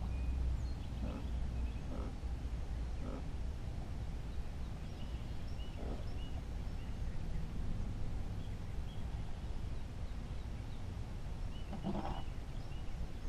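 Gear knocks and clunks on a boat.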